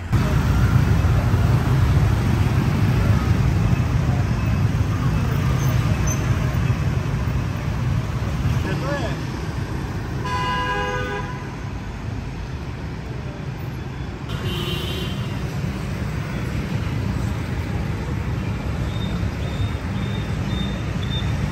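Motorbike engines hum and buzz steadily in dense traffic nearby.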